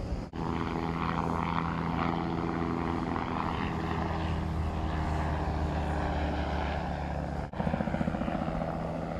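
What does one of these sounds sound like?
A small aircraft engine drones steadily overhead.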